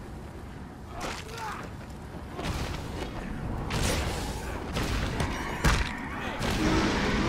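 Dull blows thud as a fighter hits enemies.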